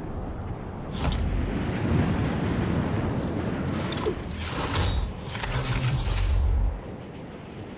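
Wind rushes loudly past during a fast dive.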